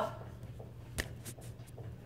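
A hand bumps the microphone with a knock.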